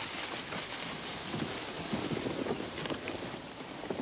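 A sled slides over snow with a soft hiss.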